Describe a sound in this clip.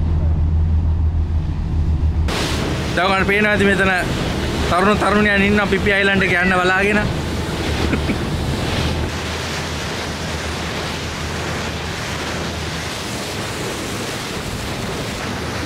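Water rushes along a boat's hull.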